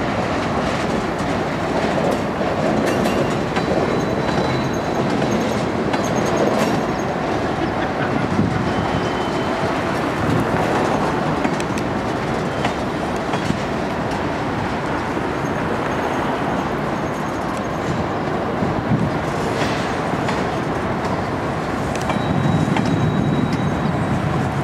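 A freight train rolls past.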